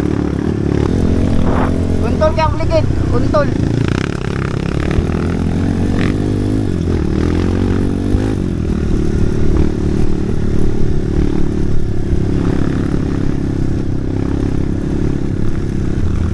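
A dirt bike engine drones and revs up close.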